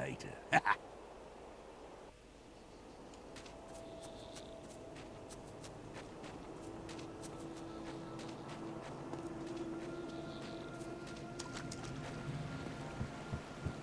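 Footsteps tread steadily on the ground.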